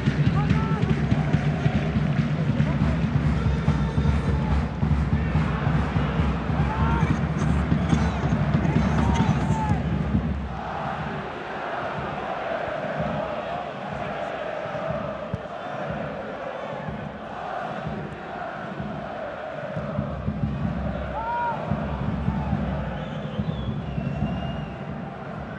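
A large stadium crowd chants and roars loudly, then quietens.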